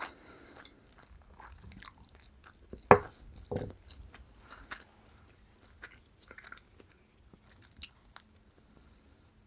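Wooden chopsticks click together.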